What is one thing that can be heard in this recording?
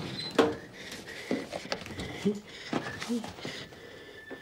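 Files rustle and scrape as a hand flips through a drawer.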